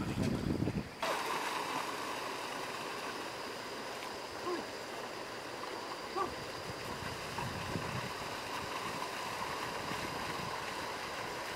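A plough drags through soft wet mud.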